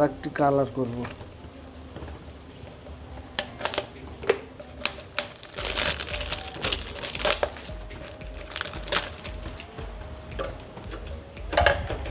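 Plastic bottles crinkle and click as they are handled.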